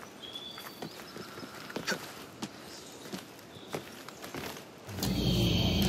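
Quick taps and scrapes sound as a figure climbs a stone wall.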